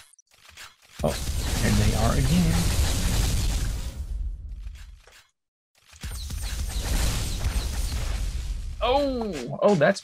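A weapon in a game fires a loud, rushing energy beam.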